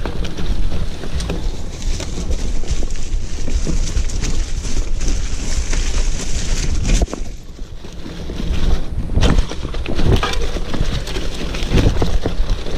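Mountain bike tyres crunch over dry leaves on a dirt trail.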